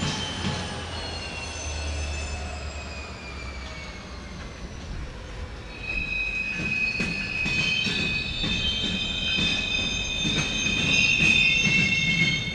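A freight train rolls slowly past, its wheels clacking on the rail joints.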